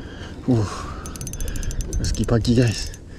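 A fishing reel ratchets with rapid clicks.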